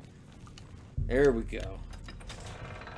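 An old wooden door creaks open.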